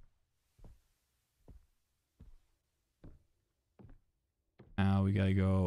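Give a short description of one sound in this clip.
Footsteps thud slowly and evenly on a wooden floor.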